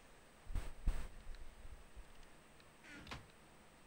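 A wooden chest thuds shut.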